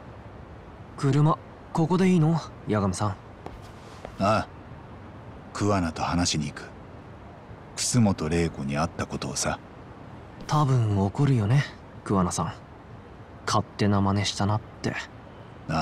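A young man answers in a quiet voice.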